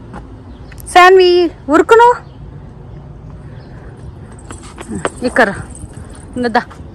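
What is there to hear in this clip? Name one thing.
A small child calls out in a high voice close by.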